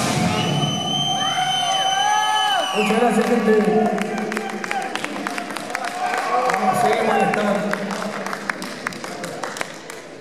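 A loud electric guitar plays through amplifiers in an echoing hall.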